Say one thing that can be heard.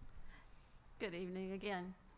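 A woman begins speaking through a microphone.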